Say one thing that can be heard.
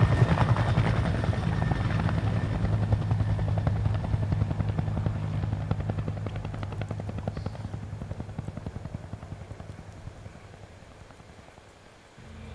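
A helicopter's rotor thumps overhead and slowly fades away.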